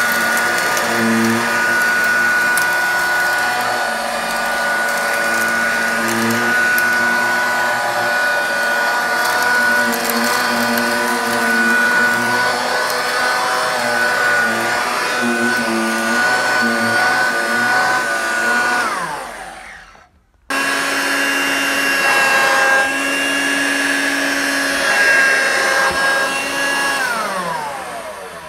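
A handheld vacuum cleaner motor whines steadily, briefly switches off and on again, then winds down.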